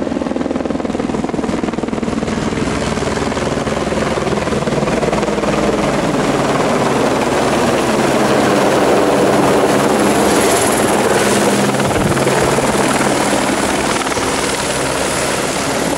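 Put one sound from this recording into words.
A helicopter's engine roars steadily close by.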